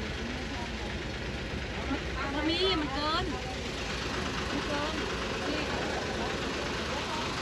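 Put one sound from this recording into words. A middle-aged woman talks with animation nearby.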